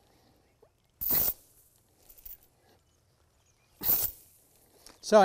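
Tall grass rustles and swishes as it is pulled and cut.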